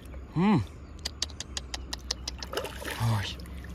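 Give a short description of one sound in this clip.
A fishing reel clicks rapidly.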